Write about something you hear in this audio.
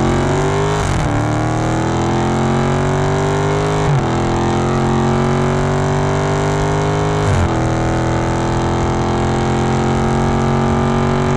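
A car engine roars as it accelerates hard, its pitch climbing and dropping with each gear change.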